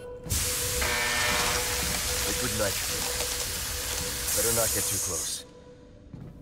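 Steam hisses loudly from a pipe.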